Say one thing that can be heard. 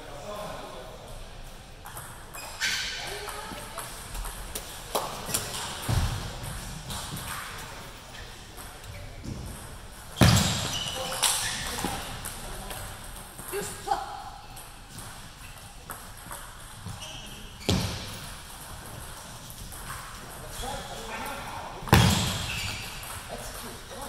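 A ping pong ball clicks sharply against paddles and a table in an echoing hall.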